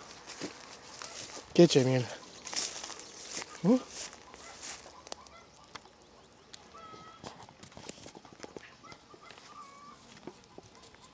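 A rabbit rustles through dry grass and leaves.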